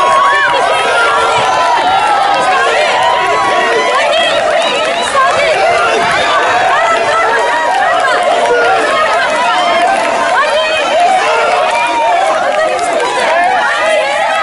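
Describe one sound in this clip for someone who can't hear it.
A woman shouts encouragement nearby.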